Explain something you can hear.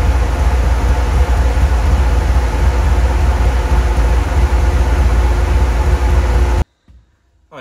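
A large fan blows with a loud, steady roar.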